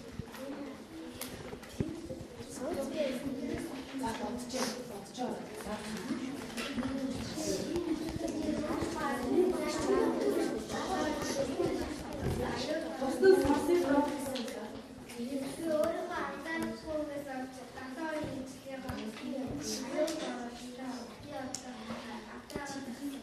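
Children chatter and murmur in a room.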